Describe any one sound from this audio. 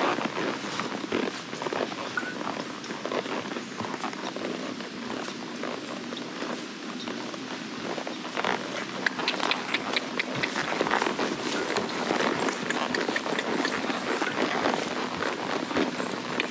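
A horse's hooves thud steadily on a grassy path.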